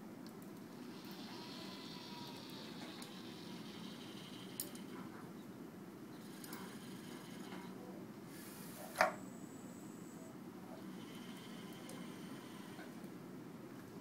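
A robot arm whirs as it moves.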